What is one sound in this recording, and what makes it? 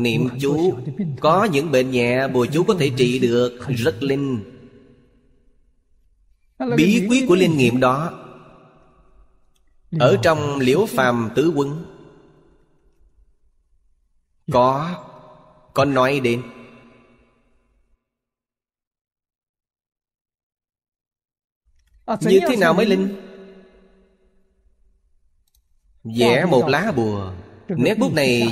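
An elderly man speaks calmly and warmly into a close microphone, in short phrases with pauses.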